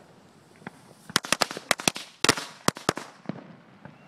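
Fireworks burst in a rapid string of sharp cracks.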